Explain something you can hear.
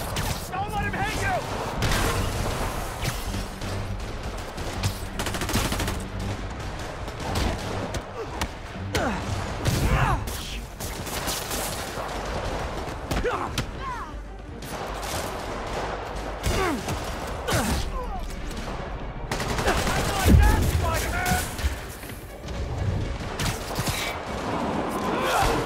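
Punches and kicks land with heavy thuds.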